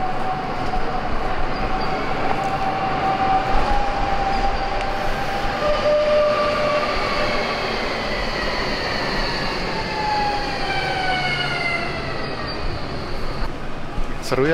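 A tram's electric motor whines and rises in pitch as it moves off.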